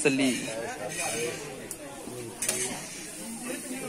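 Paper rustles as fried fish is handled.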